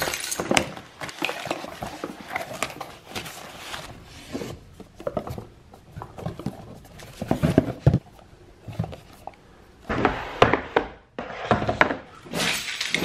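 Cardboard and packaging rustle and scrape as hands handle them.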